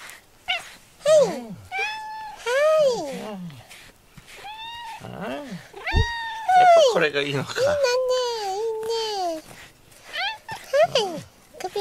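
A cat meows loudly and repeatedly.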